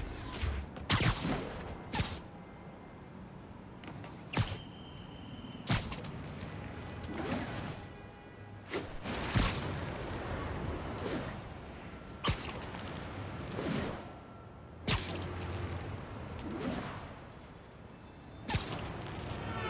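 A web line shoots out with a sharp thwip, again and again.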